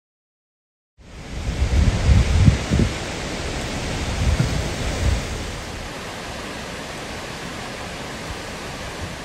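A waterfall splashes down onto rocks.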